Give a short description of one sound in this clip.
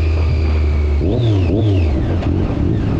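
A motorcycle engine's revs fall as the bike slows down.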